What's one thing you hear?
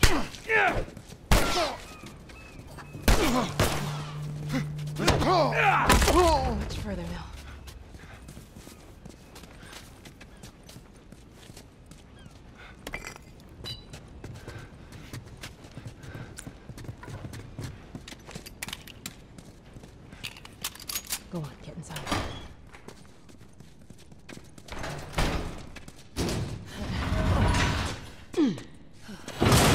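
Footsteps hurry over hard ground.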